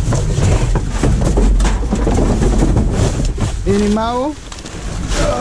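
Plastic bags crinkle underfoot.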